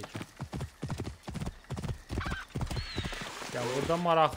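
A horse's hooves thud quickly on soft ground.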